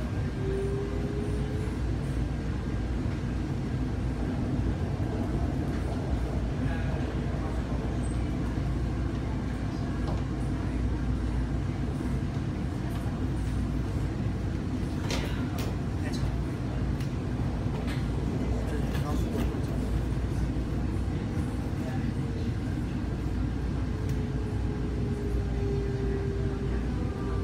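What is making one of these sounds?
A train rumbles steadily, heard from inside a carriage.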